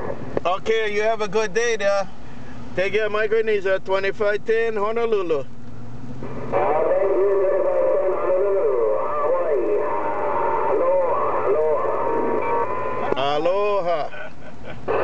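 A garbled, warbling voice comes through a radio loudspeaker in bursts.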